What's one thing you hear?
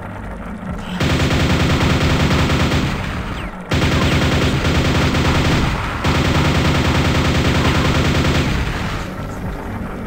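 A nail gun fires rapidly in a steady rattling stream.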